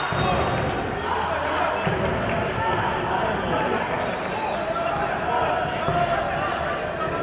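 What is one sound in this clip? A stadium crowd murmurs and calls out, outdoors.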